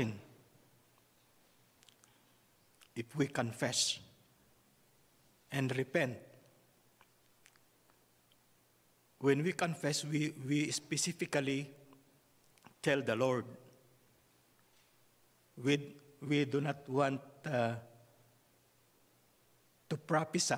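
A man speaks calmly through a microphone in an echoing hall, with pauses between phrases.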